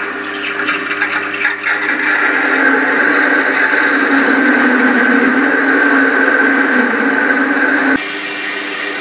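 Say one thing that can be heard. A drill bit grinds into spinning metal with a steady whine.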